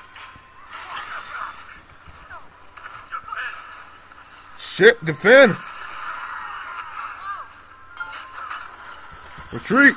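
Fighting sound effects clash and whoosh in a video game.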